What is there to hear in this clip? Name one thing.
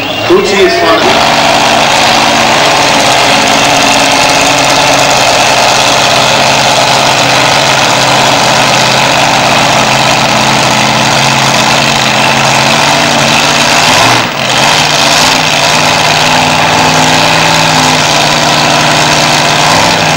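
A nitro-fuelled dragster idles with a steady, deep rumble.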